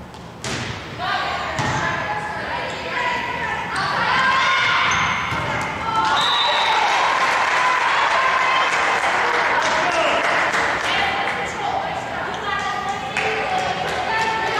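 Young women players shout and call out loudly.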